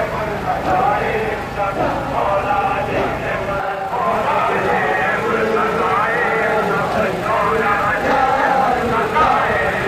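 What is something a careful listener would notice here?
A crowd of men chants together outdoors.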